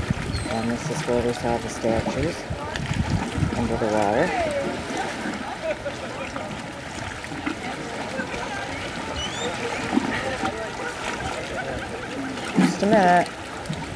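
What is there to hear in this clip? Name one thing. Small waves lap and splash steadily outdoors.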